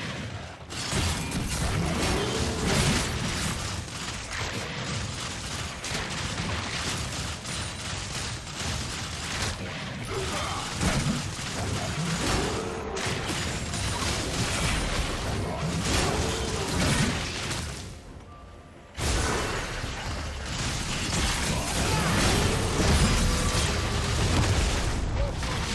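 Magic spells crackle and whoosh in a busy fight.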